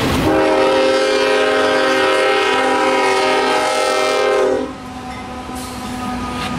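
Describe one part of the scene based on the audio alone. Diesel locomotives rumble past close by.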